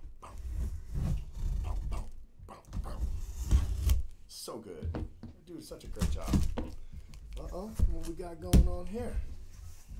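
Packing tape tears and crackles as it is pulled off a box.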